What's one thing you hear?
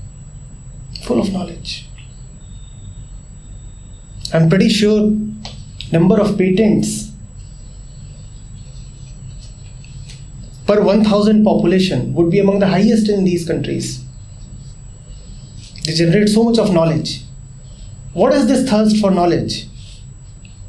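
A man speaks calmly, in short bursts with long pauses, close to a microphone.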